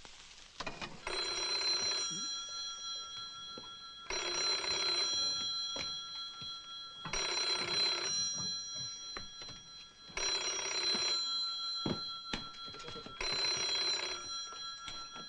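A telephone rings again and again.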